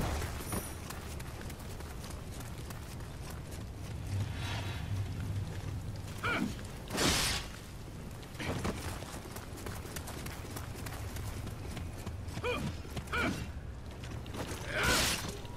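Sword strikes slash through flesh with wet thuds.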